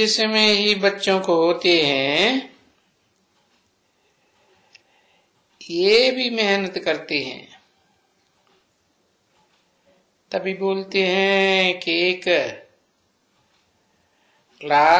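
An elderly man speaks into a microphone in drawn-out phrases with pauses.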